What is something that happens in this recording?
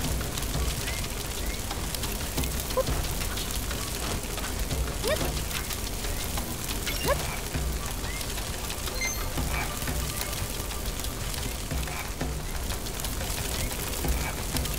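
Flames crackle and roar steadily.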